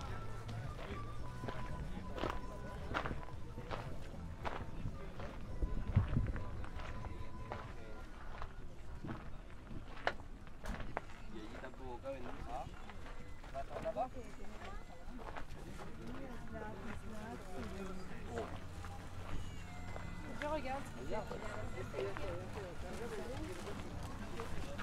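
Footsteps crunch on gravel and dirt, heard close and outdoors.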